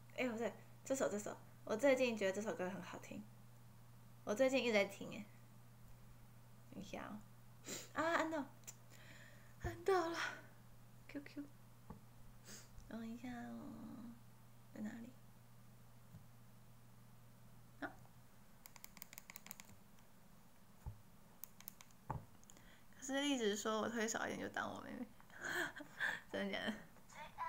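A young woman speaks softly and casually, close to a microphone.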